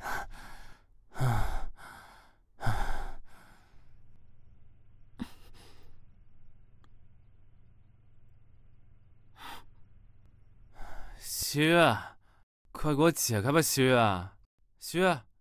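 A young man speaks in a strained, pleading voice close by.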